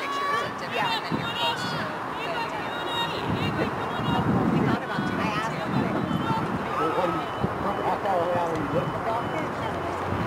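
Young women call out to each other across an open field outdoors.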